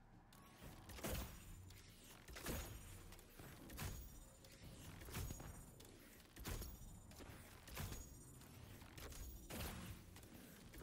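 A bow fires arrows with sharp, heavy thuds, again and again.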